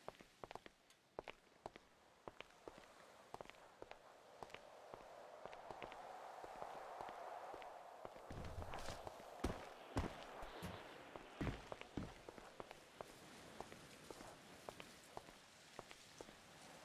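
Footsteps tap lightly on hollow wooden boxes.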